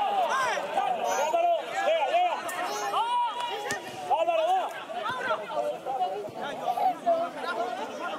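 Men shout to each other across an outdoor field.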